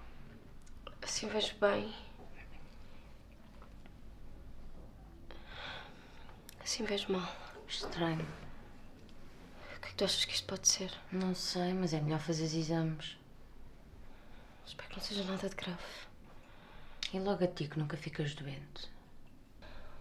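A young woman speaks quietly and earnestly, close by.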